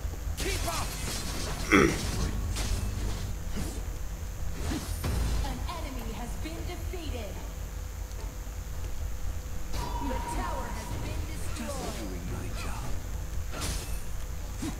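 Magic spells whoosh and zap in quick bursts.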